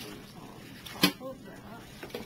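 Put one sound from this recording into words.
A stack of cardboard knocks against a table.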